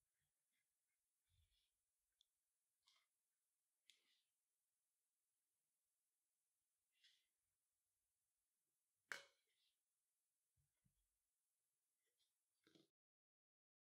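Cord rustles and scrapes softly as it is handled.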